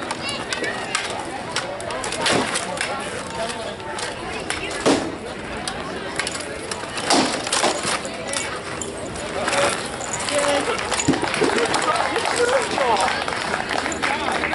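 A crowd of onlookers chatters outdoors.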